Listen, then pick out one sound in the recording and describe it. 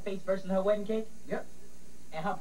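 A teenage boy talks with animation close by.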